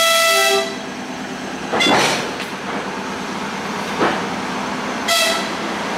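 A train rolls past close by.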